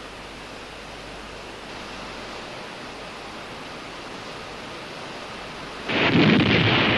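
Molten metal roars and crackles in a furnace.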